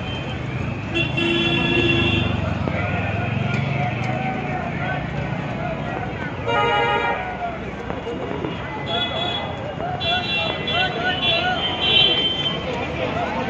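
Vehicle horns honk repeatedly.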